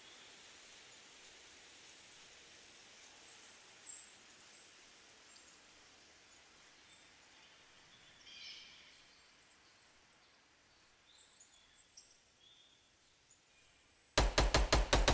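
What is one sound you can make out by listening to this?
A soft breeze blows outdoors.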